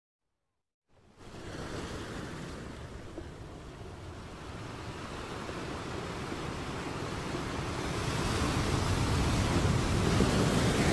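Waves crash and surge against rocks, growing louder.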